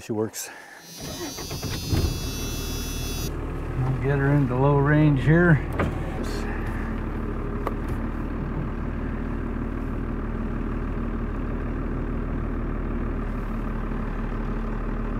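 A tractor engine starts and runs with a steady hum.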